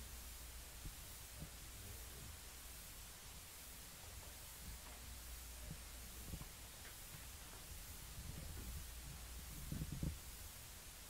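A woman speaks calmly through a microphone, faint and distant.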